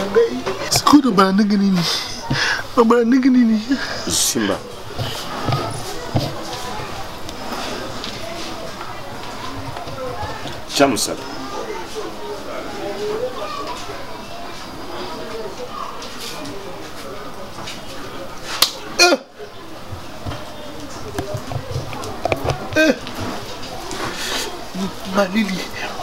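Another man answers in a low voice close by.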